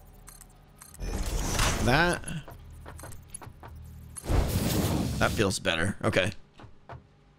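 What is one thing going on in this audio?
Game building effects whoosh and clank.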